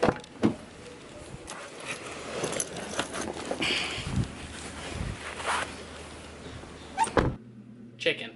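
A bag rustles close by as it is handled.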